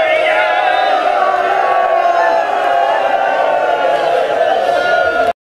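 A crowd of men chants along in unison.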